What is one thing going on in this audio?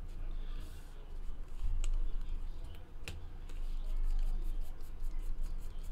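Trading cards flick and rustle as they are shuffled by hand.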